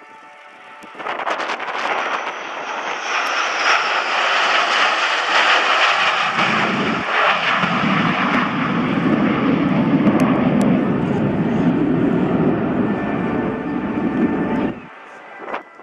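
Several jet fighters roar loudly overhead, swelling as they pass.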